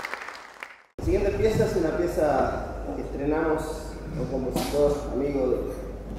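A string orchestra plays a lively tune in a large hall.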